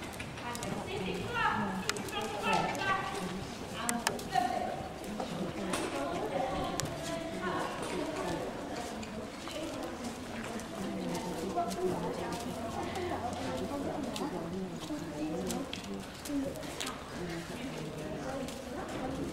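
Horses' hooves thud softly on a sandy floor.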